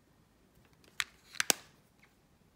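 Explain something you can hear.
A plastic compact case clicks shut.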